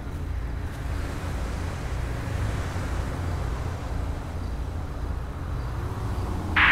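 Traffic rushes past on a nearby highway.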